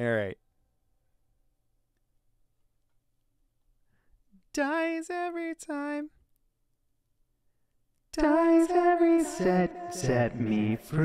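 A young man sings close to a microphone in short, held phrases.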